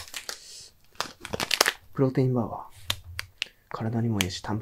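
A plastic wrapper crinkles in gloved hands.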